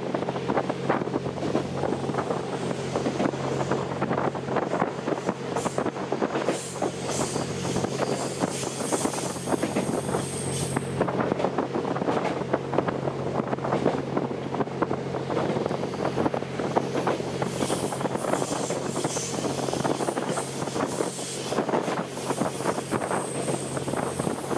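A train motor hums steadily.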